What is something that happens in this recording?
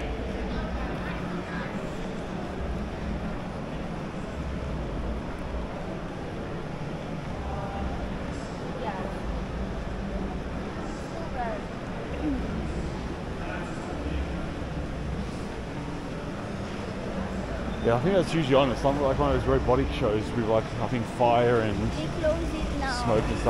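Voices murmur and echo through a large indoor hall.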